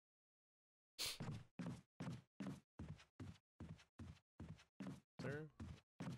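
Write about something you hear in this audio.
Footsteps thud rhythmically on a wooden floor.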